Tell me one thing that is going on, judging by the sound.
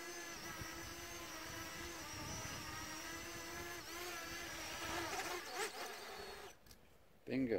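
A small drone's propellers whine steadily as it hovers close by.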